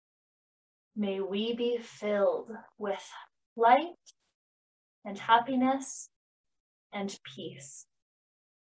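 A young woman speaks calmly and softly through a microphone.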